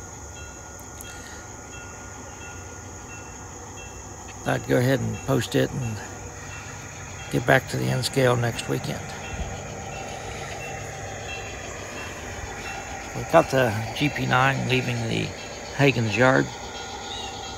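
A model train rolls along its track with a low, steady rumble.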